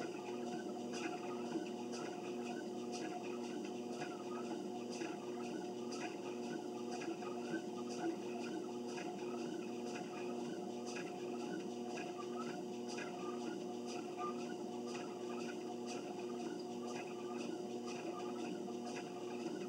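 Footsteps thud rhythmically on a treadmill belt.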